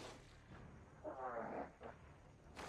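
A young woman speaks in a low, calm voice close by.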